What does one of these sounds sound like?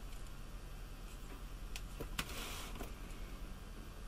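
Stiff fabric rustles as hands handle it.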